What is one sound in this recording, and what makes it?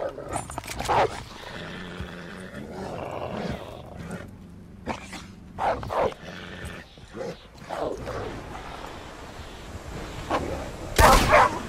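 A wolf snarls and growls close by.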